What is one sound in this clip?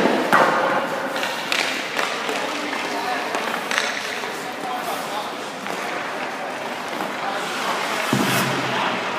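A puck strikes pads with a sharp knock.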